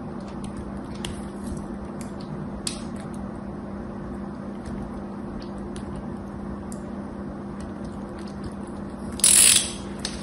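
A knife blade scrapes and clicks against a bar of soap.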